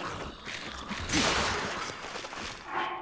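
A sword shatters with a loud burst.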